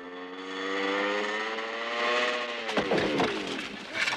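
A motorcycle clatters as it falls onto rock.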